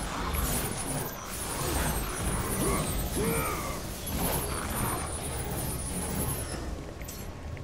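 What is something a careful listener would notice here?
Blades slash and strike in a fast, noisy fight.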